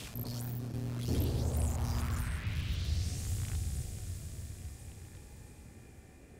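A magical shield swells up with a deep rumbling whoosh.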